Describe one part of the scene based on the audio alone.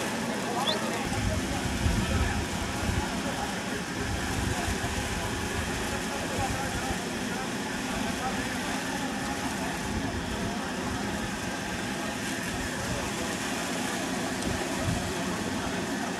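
Wind blows outdoors against the microphone.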